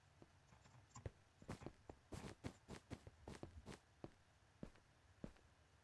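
Footsteps tap steadily on a hard stone floor.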